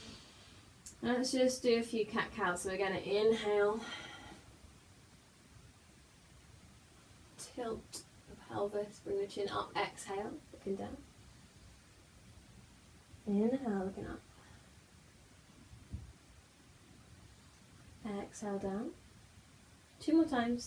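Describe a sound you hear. A young woman speaks calmly and slowly, nearby.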